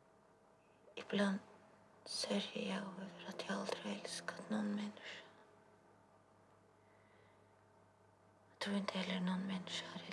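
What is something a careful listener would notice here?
A woman speaks close by in a low, shaken voice, in short bursts with pauses.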